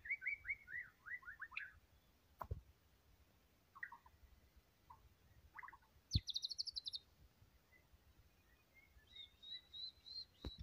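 A songbird sings close by in quick, varied phrases and chirps.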